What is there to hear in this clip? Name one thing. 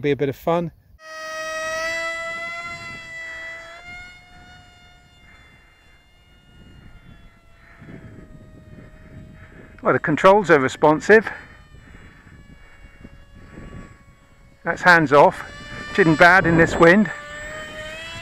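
A model plane's engine drones steadily, fading as it flies off and growing louder as it passes back.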